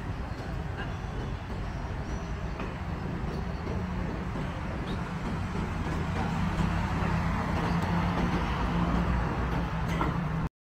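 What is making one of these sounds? Traffic hums steadily on a nearby street.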